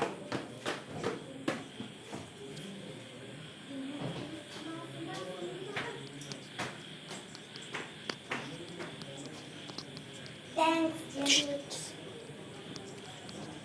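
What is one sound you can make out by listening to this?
A song plays through a small phone speaker.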